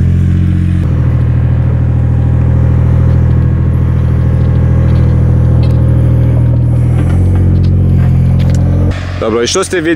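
A metal detector hums with a steady, droning tone.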